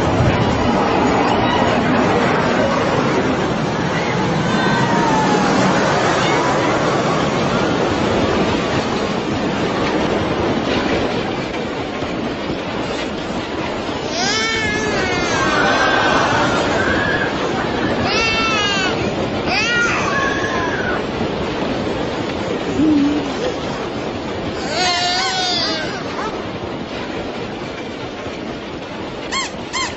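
A busy crowd murmurs in the background.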